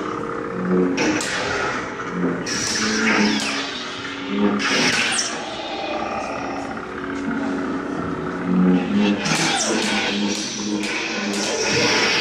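Lightsaber blades clash with sharp crackling hits.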